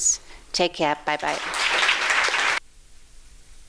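An audience claps in a large hall.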